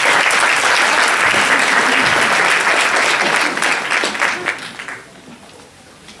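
An audience applauds in a large hall, then the clapping dies away.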